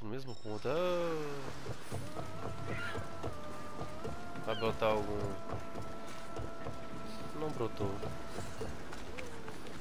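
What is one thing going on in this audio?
Footsteps tread quickly on wooden boards.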